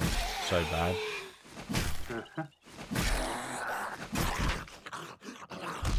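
A zombie growls and groans up close.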